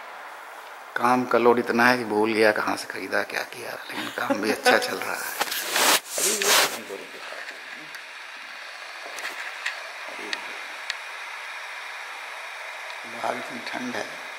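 An elderly man speaks close by, calmly.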